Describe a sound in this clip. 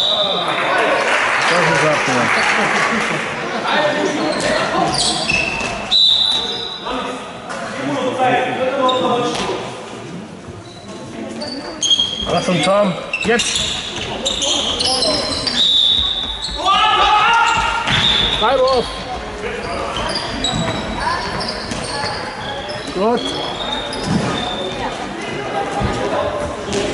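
Children's shoes squeak sharply on a hall floor.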